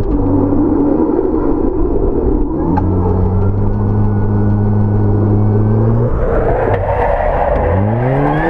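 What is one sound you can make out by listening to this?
A car engine roars and revs up and down close by.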